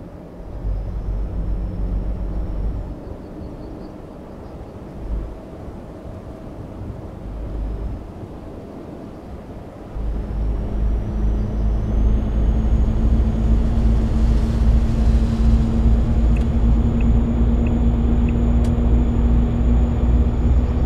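A truck engine drones steadily, growing louder partway through.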